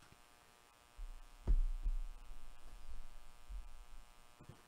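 A cardboard box is handled with soft knocks and rustling.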